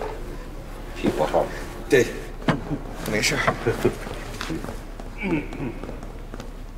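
An elderly man and a young man talk with animation.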